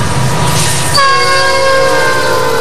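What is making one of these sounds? A diesel freight locomotive's air horn blasts.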